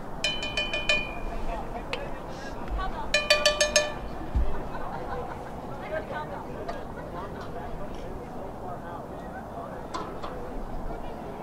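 Young men shout to one another across an open field, some way off.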